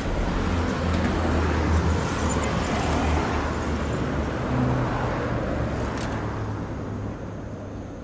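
Traffic rumbles steadily in the distance.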